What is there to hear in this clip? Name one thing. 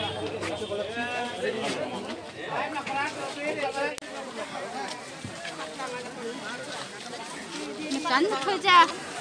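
A crowd of men and women chatters close by, many voices overlapping.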